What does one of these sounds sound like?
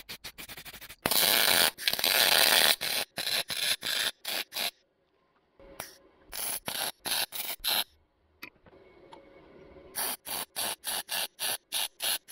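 A welding torch crackles and sizzles in short bursts.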